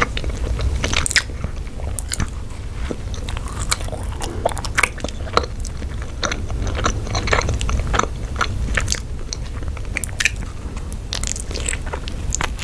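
A young woman bites into a soft bun with a crunch.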